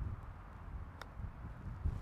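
A golf club strikes a ball with a short, crisp click.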